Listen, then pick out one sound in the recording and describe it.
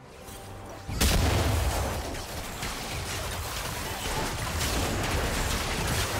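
Swords and blows clash with sharp impacts.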